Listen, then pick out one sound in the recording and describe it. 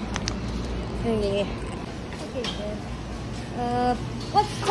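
A young woman speaks briefly and casually, close by.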